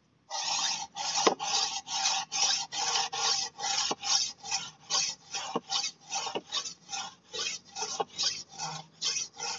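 A machete blade scrapes back and forth on a whetstone in rhythmic strokes.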